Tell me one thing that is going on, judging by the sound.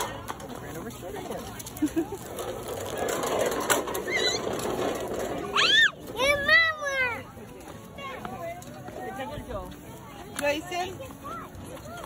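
Young children chatter and babble close by.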